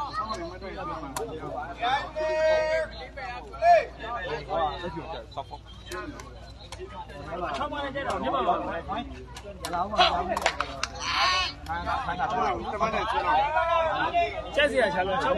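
A crowd of men and boys chatters and shouts close by outdoors.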